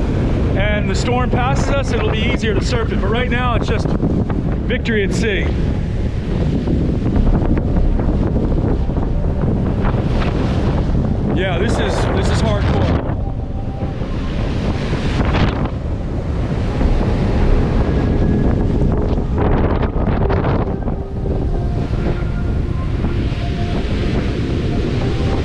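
Heavy surf crashes and churns nearby.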